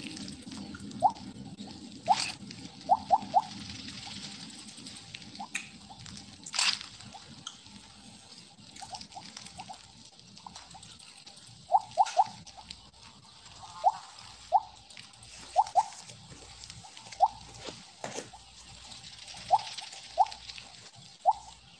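Short, bright game blips chime again and again as a snake gobbles up pellets.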